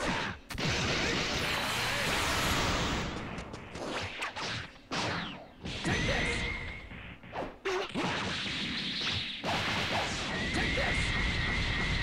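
Energy beams whoosh and roar loudly.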